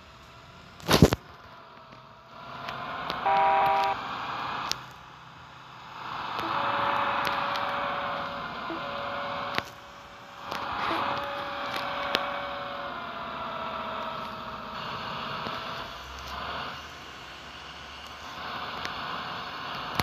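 A tractor engine hums and rises and falls in pitch as the tractor drives.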